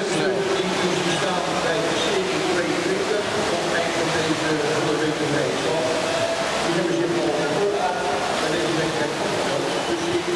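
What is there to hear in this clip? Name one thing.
Swimmers splash and churn through water.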